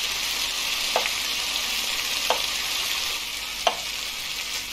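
A knife chops on a cutting board a few times.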